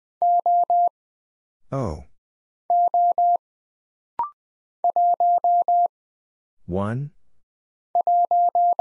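Morse code beeps in short, steady bursts of a high tone.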